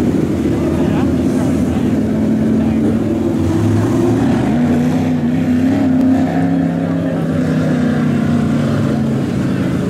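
A race car engine revs up as a car drives past.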